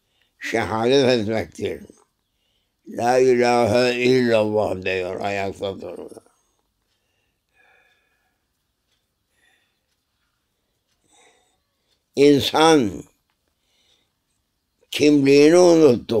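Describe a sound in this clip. An elderly man speaks slowly and calmly close to a microphone, with long pauses.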